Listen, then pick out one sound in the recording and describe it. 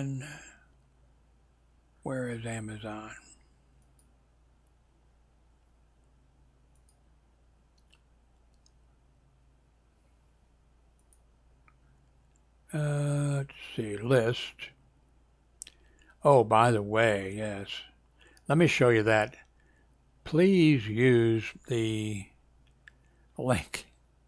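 A man speaks calmly into a headset microphone, with pauses.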